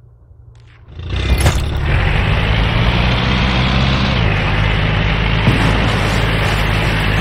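A heavy engine rumbles loudly and steadily.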